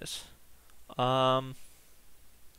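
A young man lets out a long sung note.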